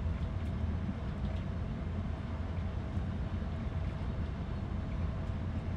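A train locomotive rumbles steadily as it rolls along the tracks.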